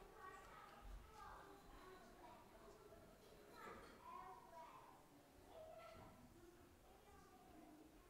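A young girl talks softly.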